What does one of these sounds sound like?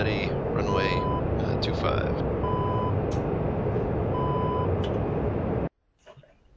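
A jet engine roars steadily inside a cockpit, then cuts off abruptly.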